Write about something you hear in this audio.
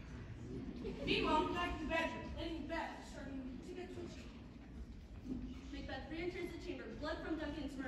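A young man speaks loudly and with animation in a large echoing hall.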